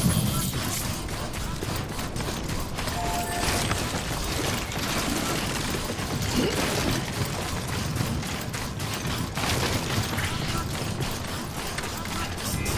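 Heavy boots crunch steadily over loose rocky ground.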